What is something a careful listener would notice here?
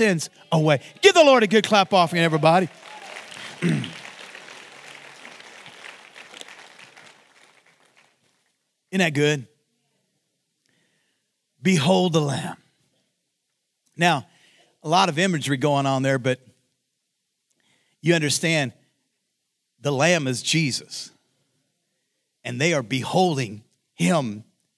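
A man speaks with animation into a microphone over loudspeakers in a large hall, in short bursts with pauses.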